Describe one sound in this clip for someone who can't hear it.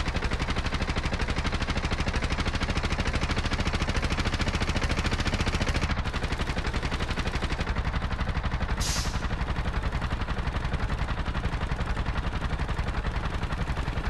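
A small motor engine putters rapidly and steadily.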